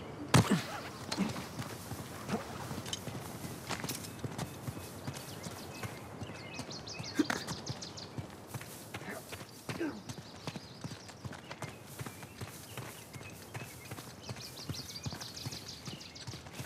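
Footsteps run over grass and stone.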